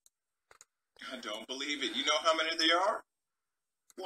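A young man speaks through a microphone.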